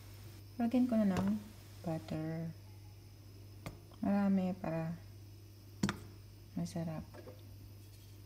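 Butter drops softly into a pan.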